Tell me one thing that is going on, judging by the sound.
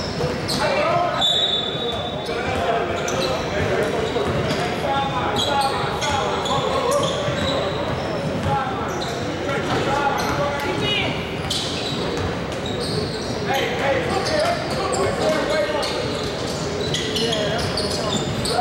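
Many people talk and shout in a large echoing hall.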